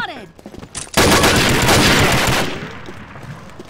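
Rapid gunfire rattles loudly in a burst.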